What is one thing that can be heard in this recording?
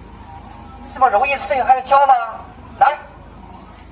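A man speaks loudly through a megaphone.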